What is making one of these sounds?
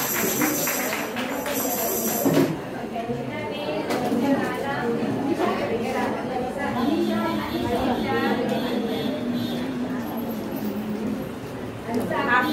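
Several elderly men and women chat and murmur nearby.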